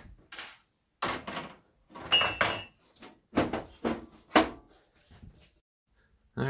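A metal side panel scrapes and clanks as it slides off a computer case.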